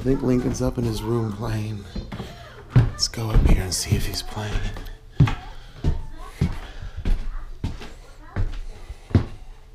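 Footsteps thud up wooden stairs.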